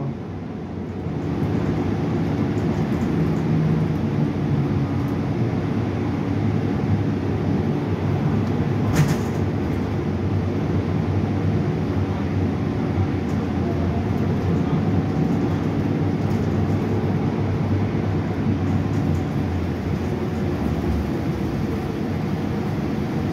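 A bus interior rattles and clatters as the bus rolls over the road.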